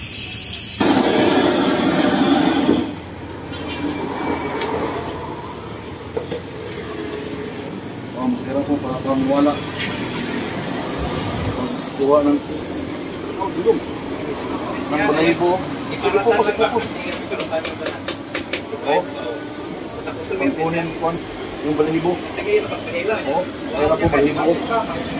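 A gas torch roars and hisses.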